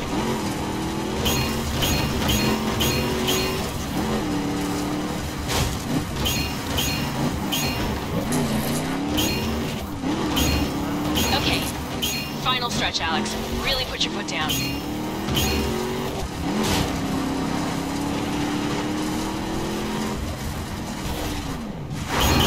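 A racing engine roars and revs up and down.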